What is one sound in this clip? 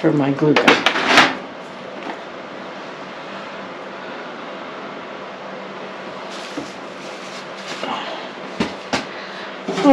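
Small plastic objects clatter and knock in a tray.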